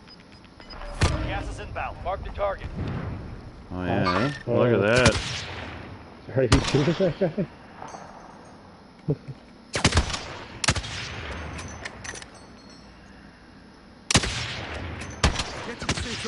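Rifle shots crack sharply in a game.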